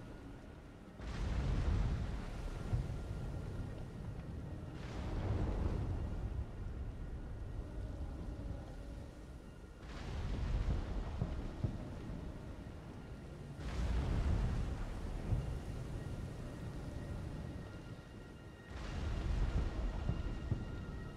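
Leafy plants rustle and crackle in bursts as they are gathered.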